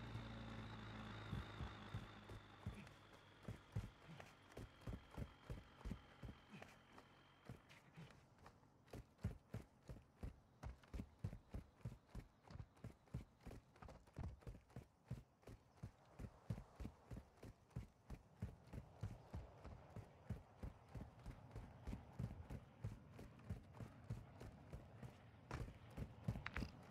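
Footsteps crunch quickly and steadily on rocky ground.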